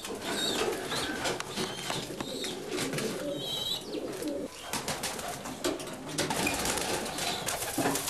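Small birds chirp in cages.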